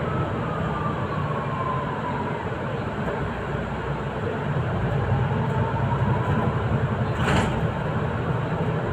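A bus engine hums and rumbles steadily.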